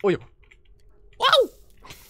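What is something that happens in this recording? Flames crackle.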